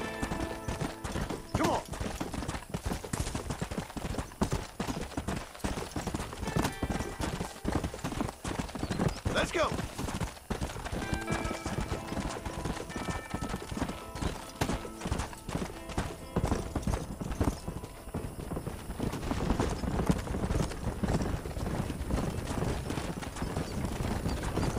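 A horse gallops, its hooves thudding on a dirt trail.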